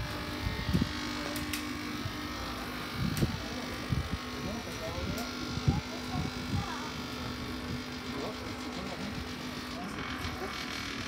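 A cotton candy machine hums steadily as it spins.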